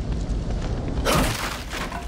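A body scrambles onto a wooden crate with a rough scuffing thud.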